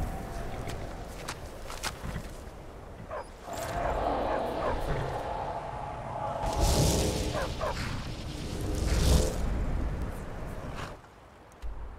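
Horse hooves clop on stone.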